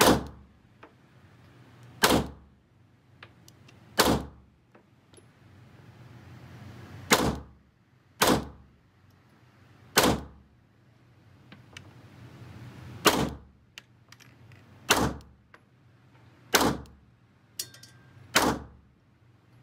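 A pistol fires single loud shots that echo in a room.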